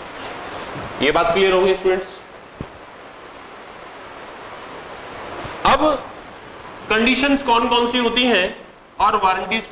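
A man speaks in a lecturing tone, close by.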